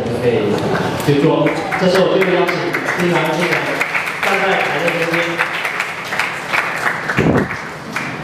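A man speaks steadily through a microphone and loudspeaker in an echoing hall.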